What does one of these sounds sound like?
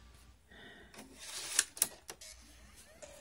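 A disc clicks and rattles into a laptop drive.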